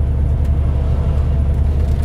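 An oncoming truck rushes past close by.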